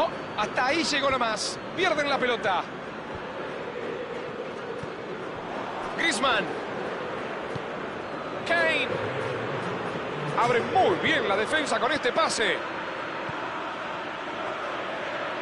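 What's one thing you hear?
A large crowd murmurs and cheers steadily in a stadium.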